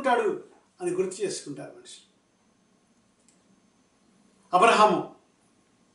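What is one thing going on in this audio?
A middle-aged man speaks calmly and close to a microphone, with short pauses.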